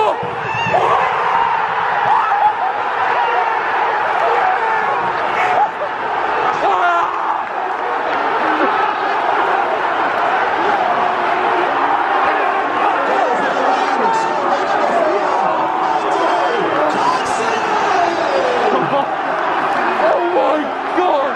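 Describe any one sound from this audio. A large crowd of men cheers and chants loudly, close by, in an open stadium.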